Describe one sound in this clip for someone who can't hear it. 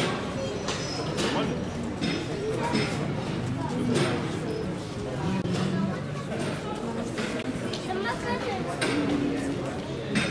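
Men and women chatter in the background outdoors.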